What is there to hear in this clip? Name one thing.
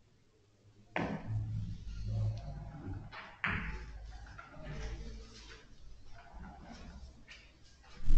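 Billiard balls click sharply against each other.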